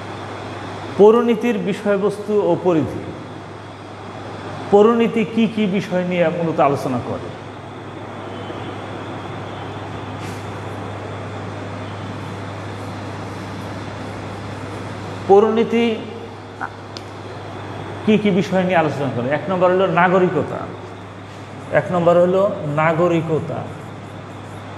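A middle-aged man speaks calmly in a lecturing tone close by.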